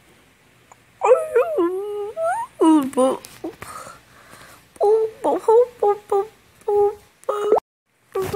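A short bright musical jingle plays.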